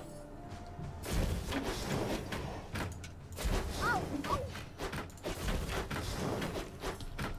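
Weapons clash and magic spells blast in a fight.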